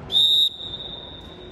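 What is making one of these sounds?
A referee blows a short, sharp whistle.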